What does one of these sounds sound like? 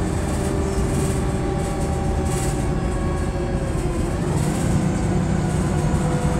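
A bus engine whines with a slowly shifting pitch.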